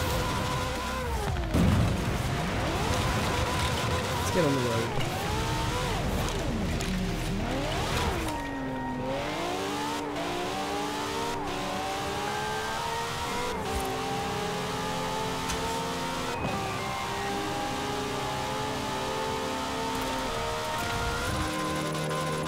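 A racing car engine revs up and down as it speeds along.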